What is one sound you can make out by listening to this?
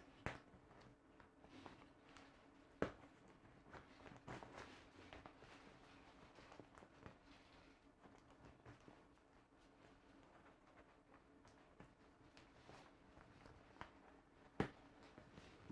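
Small clicks and taps come from fiddling with a plastic fitting.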